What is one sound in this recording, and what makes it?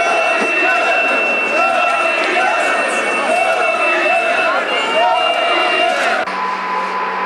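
A large crowd sings and chants loudly.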